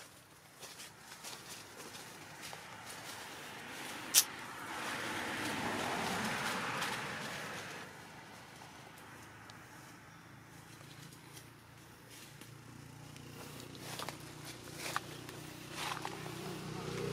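Leaves and branches rustle as a small monkey climbs through a tree.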